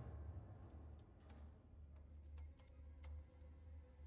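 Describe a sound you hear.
Fingers tap on keyboard keys.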